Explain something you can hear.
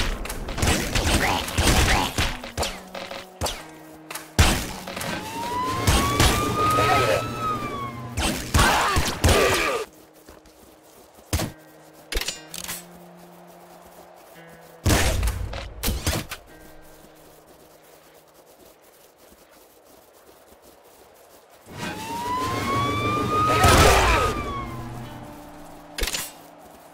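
Game gunfire and explosions burst in quick bursts.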